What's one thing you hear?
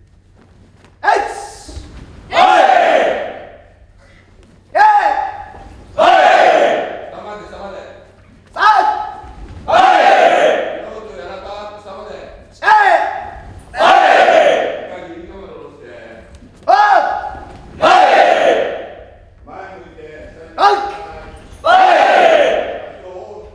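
A large group of young men and women shout loud cries together in rhythm, echoing in a large hall.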